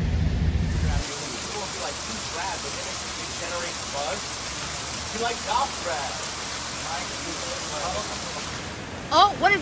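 Cars splash through deep water on a street.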